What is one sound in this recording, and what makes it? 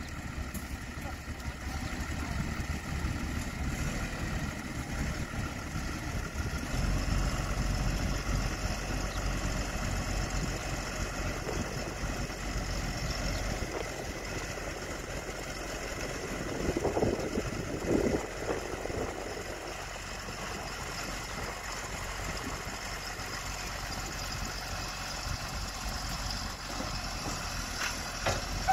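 A heavy road roller's diesel engine rumbles steadily.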